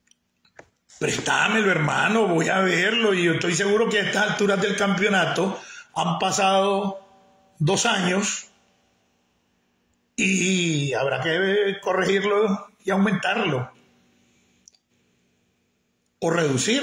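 An older man speaks calmly and close up, in short bursts with pauses.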